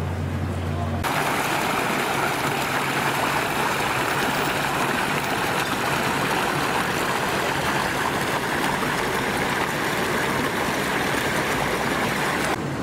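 Water splashes and rushes steadily down a stepped fountain nearby.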